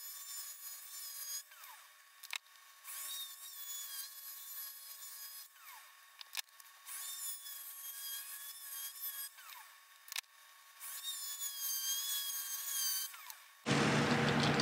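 A small rotary tool whines steadily as it grinds metal, in short bursts.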